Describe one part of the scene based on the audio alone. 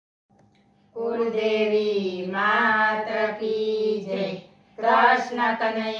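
Several women chant together in unison, close by.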